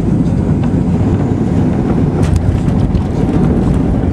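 Aircraft wheels rumble and thud on a runway.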